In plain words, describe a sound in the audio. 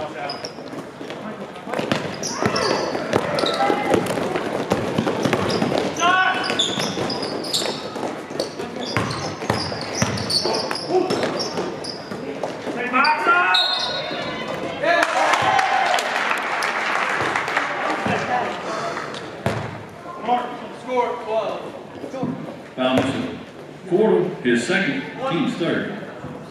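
Spectators cheer and shout in a large echoing gym.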